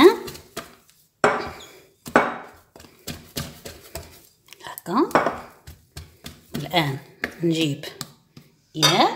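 Hands knead soft dough, squelching and slapping.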